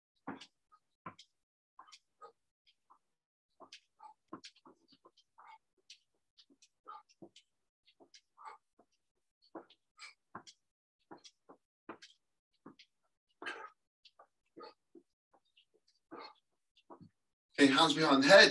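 Feet thud on the floor as a man does jumping jacks.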